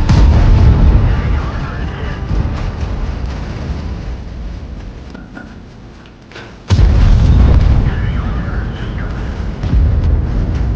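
A tank cannon fires with a deep, heavy boom that slowly rolls away.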